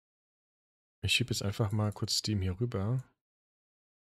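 A man speaks with animation close to a microphone.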